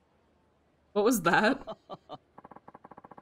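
A man chuckles softly.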